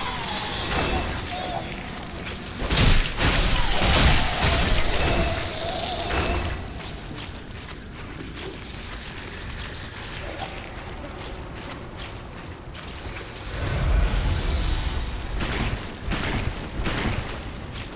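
Armoured footsteps crunch quickly over the ground.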